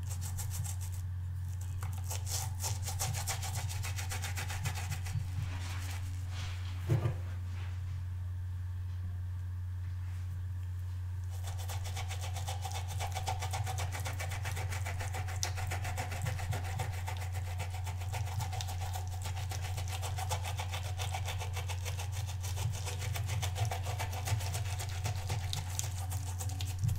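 A brush scrubs rapidly against a rubbery pad.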